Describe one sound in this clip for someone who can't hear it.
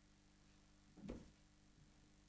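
A body knocks once against a wooden floor.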